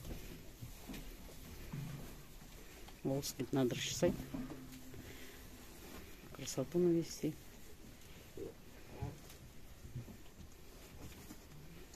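A goat rubs its head against a stiff brush with a scratchy rustling.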